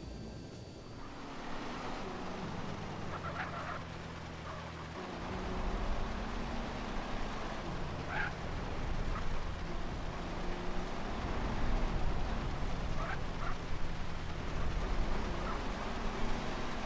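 Rain hisses steadily on the road.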